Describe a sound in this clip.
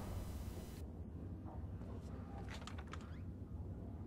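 A heavy wooden door creaks open.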